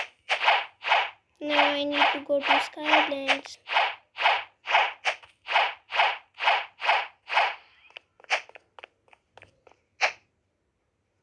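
Rapid, evenly spaced game hit sounds thump.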